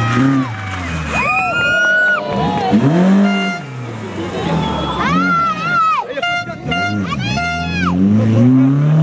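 Rally car engines pop and crackle.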